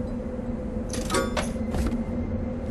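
Coins chime as they are collected.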